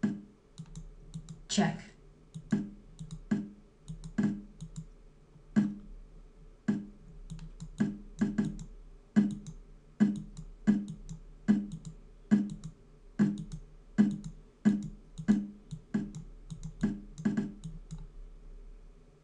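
A chess piece clicks down on a board again and again at a quick, steady pace.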